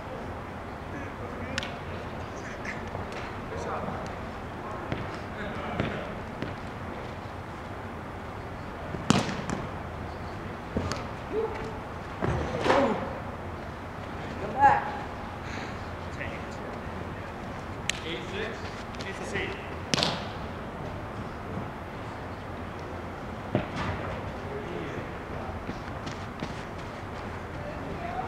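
Sneakers squeak and thud on the floor as players run.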